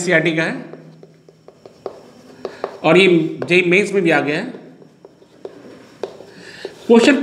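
A man speaks calmly, close by, as if teaching.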